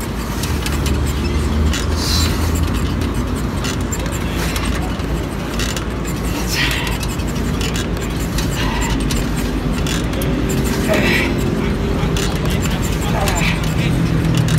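A man breathes hard with effort.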